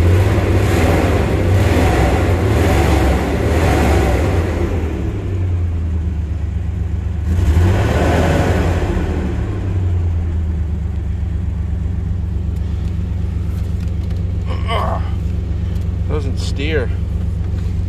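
A vehicle engine idles with a low steady rumble.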